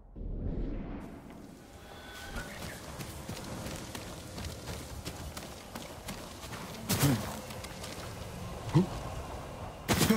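Footsteps run quickly over dry leaves and earth.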